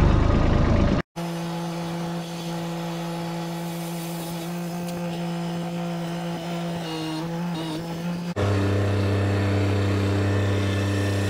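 A tractor engine hums steadily close by.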